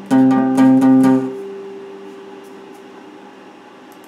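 An electric guitar strums a loud chord that rings out and fades.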